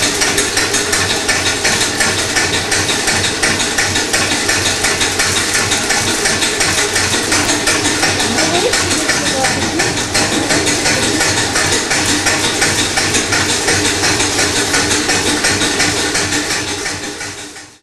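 A grain mill runs with a steady, rhythmic grinding clatter.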